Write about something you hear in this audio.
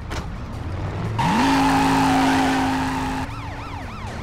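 A car engine revs up and roars.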